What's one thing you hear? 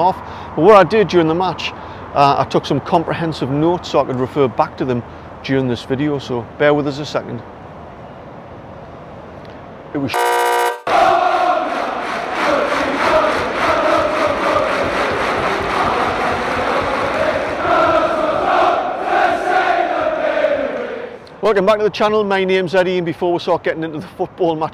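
A man speaks steadily and earnestly, close to a microphone.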